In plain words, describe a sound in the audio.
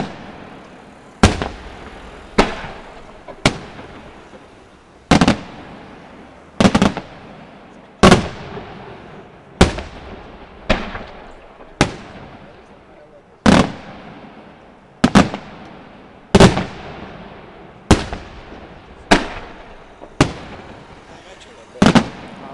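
Fireworks crackle and fizz after the bursts.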